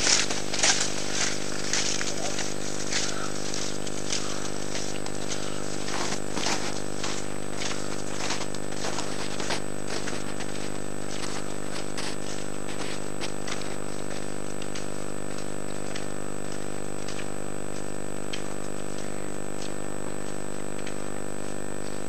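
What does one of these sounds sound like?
Ski poles plant into snow with short crunches.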